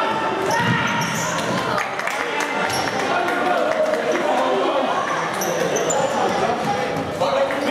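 A ball thumps off players' feet.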